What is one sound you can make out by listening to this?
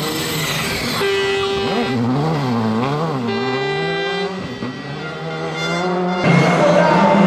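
A rally car engine revs up and down as the car turns slowly.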